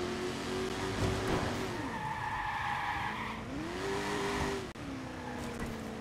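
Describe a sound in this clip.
Tyres screech on a wet road.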